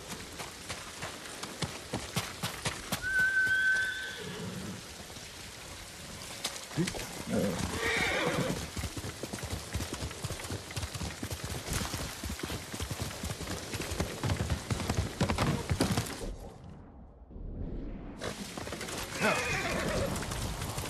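Footsteps crunch quickly over gravel and grass.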